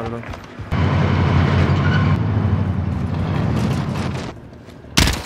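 A truck engine roars.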